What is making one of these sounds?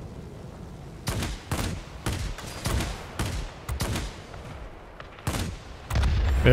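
Aircraft machine guns fire in short rapid bursts.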